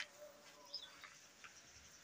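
A flag flutters in the wind.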